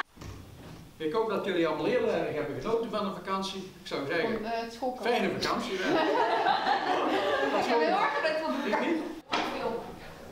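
An elderly man speaks calmly to a small group in a room.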